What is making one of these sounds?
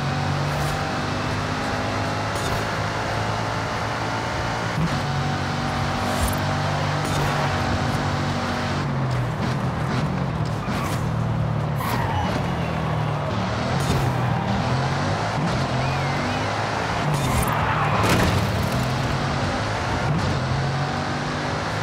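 A sports car engine roars loudly at high speed, its pitch rising and falling as gears change.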